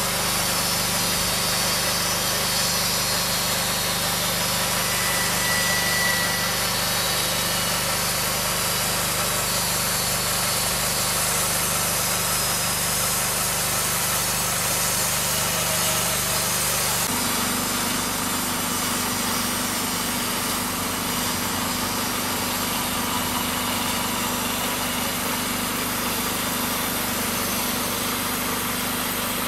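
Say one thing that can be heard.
A sawmill engine runs with a steady loud drone.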